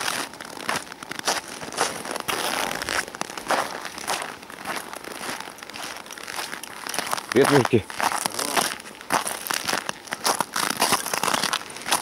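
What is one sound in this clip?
Footsteps crunch steadily through snow close by.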